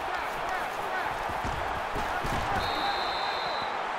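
Football players crash together in a tackle.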